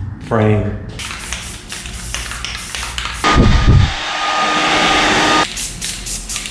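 A spray can rattles as it is shaken.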